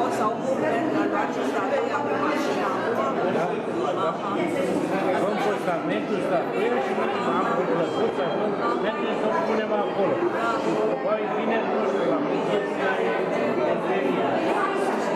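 A crowd of adults chatters in an echoing room.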